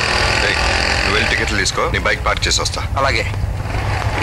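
A man talks loudly outdoors.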